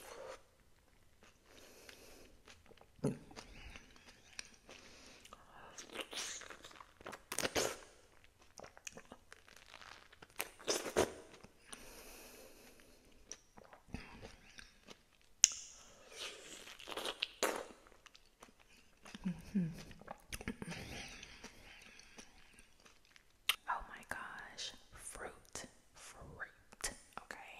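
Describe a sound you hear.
A young woman whispers close to a microphone.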